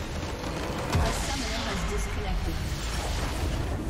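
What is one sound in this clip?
A huge structure explodes with a deep boom.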